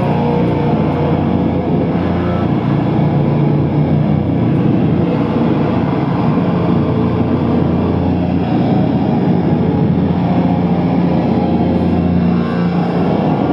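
An electric guitar plays loud and distorted through an amplifier.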